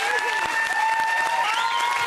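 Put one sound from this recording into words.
A young woman screams with excitement.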